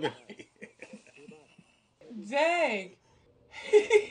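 A young man laughs heartily.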